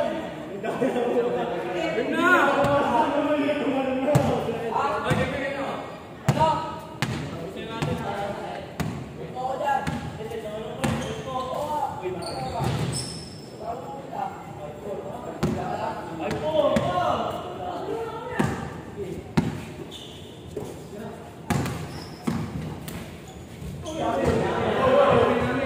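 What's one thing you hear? A basketball bounces on a hard court, echoing in a large hall.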